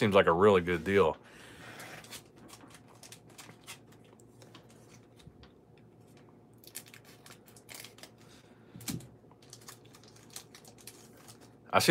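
A foil card pack crinkles and rustles as it is handled.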